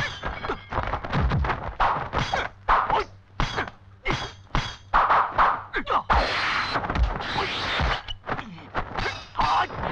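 Fighters' clothing whooshes sharply through the air in quick swings and spins.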